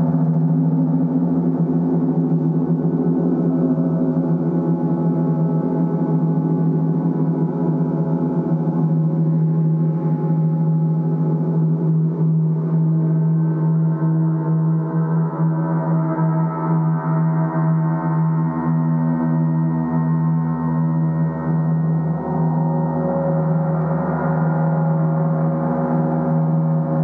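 Large gongs hum and shimmer in a deep, sustained wash of tone.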